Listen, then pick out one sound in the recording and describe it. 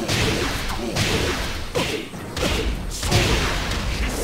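Blasts of energy burst with loud crackling whooshes.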